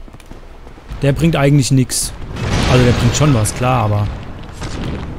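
A young man speaks with animation into a close microphone.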